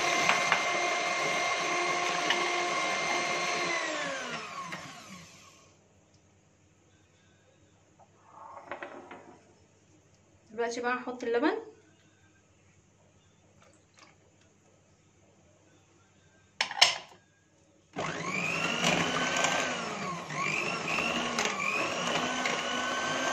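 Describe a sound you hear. An electric hand mixer whirs as it beats batter in a bowl.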